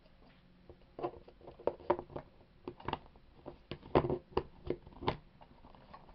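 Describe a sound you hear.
A plastic barrel lid clicks and clatters as a hand handles it.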